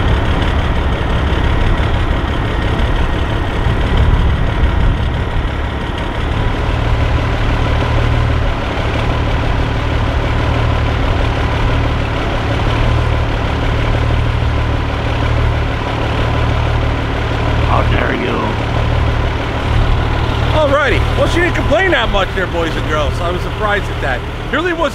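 A truck engine idles with a deep, steady rumble outdoors.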